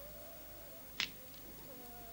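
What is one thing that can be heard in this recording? A crisp cookie cracks apart in someone's fingers.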